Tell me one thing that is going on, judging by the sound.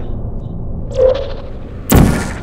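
A sci-fi gun fires with a sharp electric zap.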